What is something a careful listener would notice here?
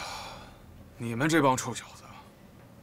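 A middle-aged man speaks with a laugh.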